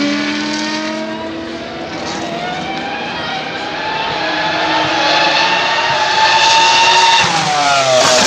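Racing motorcycle engines whine loudly, growing louder and then dropping in pitch as they speed past.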